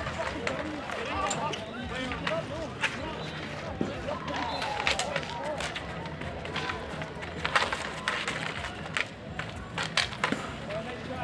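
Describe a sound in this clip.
Street hockey sticks clack against a ball and each other on asphalt outdoors.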